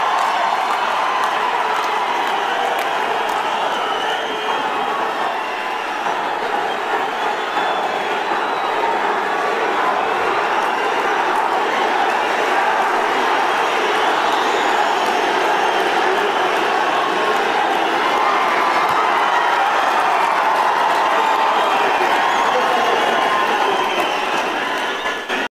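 A large crowd applauds steadily.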